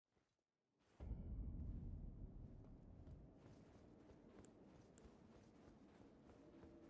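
Footsteps run up stone stairs in a game.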